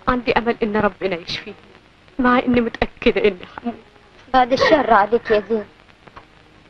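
A young woman speaks tearfully and pleads, close by.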